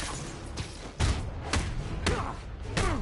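Punches land with heavy thuds in a fight.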